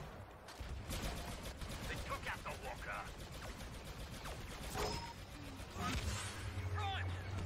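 Laser blasters fire in short bursts.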